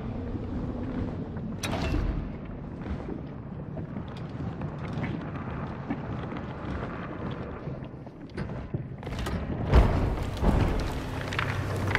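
A huge creature growls with a deep, low rumble.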